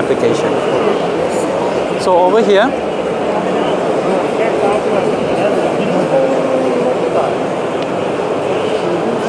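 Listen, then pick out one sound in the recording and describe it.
A crowd murmurs and chatters in a busy hall.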